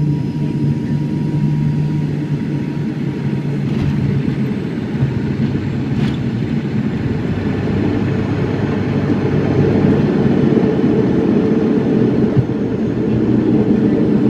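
Aircraft wheels rumble over a runway.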